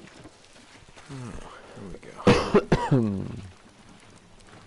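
A man grunts loudly with effort.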